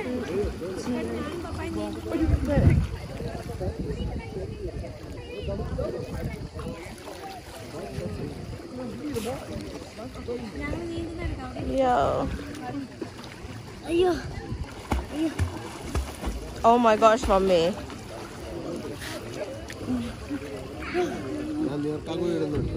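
Water splashes and laps as people swim.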